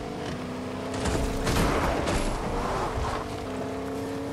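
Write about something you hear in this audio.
A truck smashes through rocks with a loud crunching crash.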